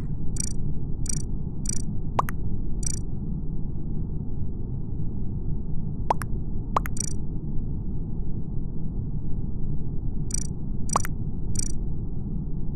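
Short soft electronic clicks sound now and then.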